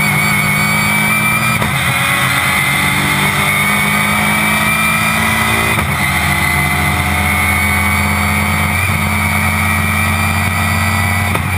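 A racing car engine roars loudly from inside the cabin, its pitch shifting as the car changes gear.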